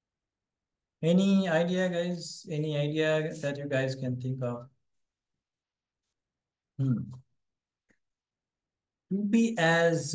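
A man speaks calmly and close to a microphone, with pauses.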